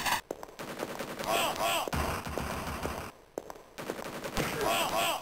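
A gun fires glowing energy shots again and again in quick bursts.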